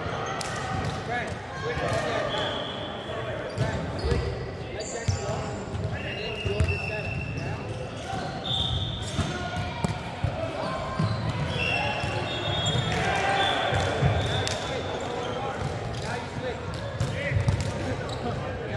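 Shoes squeak sharply on a wooden court in a large echoing hall.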